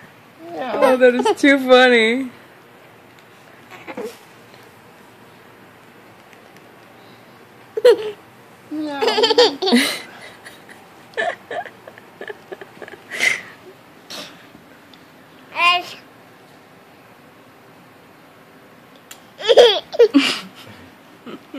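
A baby coos and squeals up close.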